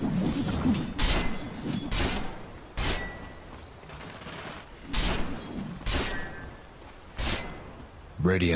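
Magic blasts burst with sharp whooshes.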